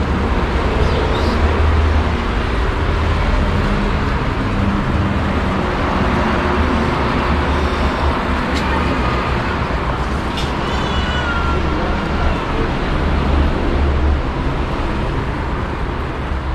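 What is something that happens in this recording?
Water flows and trickles steadily in a small stream close by.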